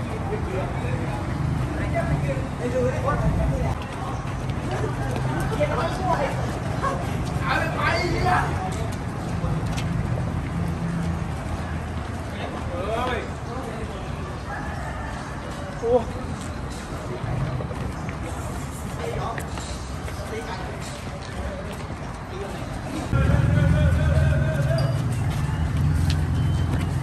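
Many footsteps patter on concrete as a group jogs past.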